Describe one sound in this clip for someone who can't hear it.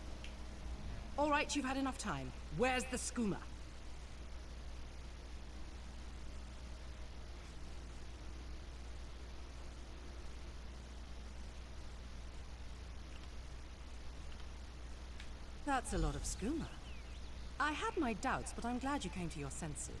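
A woman speaks firmly and clearly.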